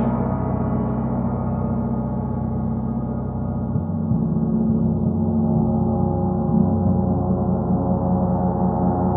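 A large gong played with a mallet rings in a long, swelling, shimmering drone.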